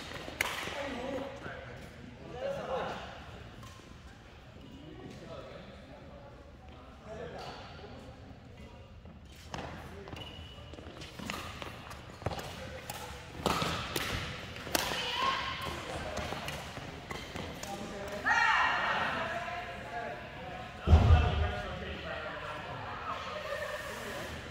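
Rackets hit shuttlecocks with sharp thwacks in a large echoing hall.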